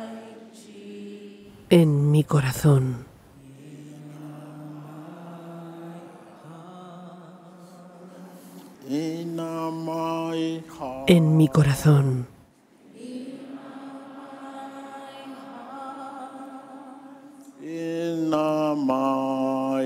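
A large crowd sings a slow hymn together in a big echoing hall.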